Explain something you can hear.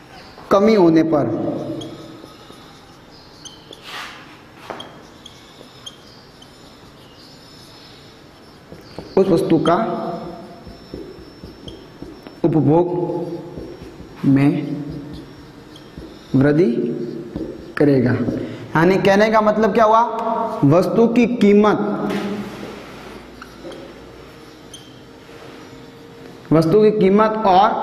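A young man speaks calmly and clearly.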